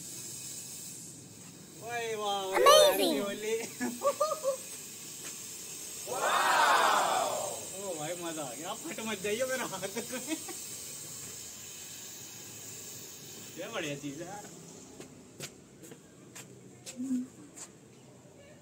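A smoke flare hisses steadily.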